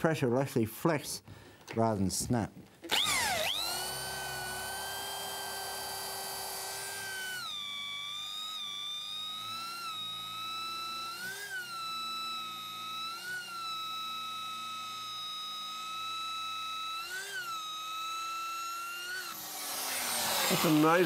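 An electric drill whines steadily as it bores, its pitch dipping briefly under load and winding down at the end.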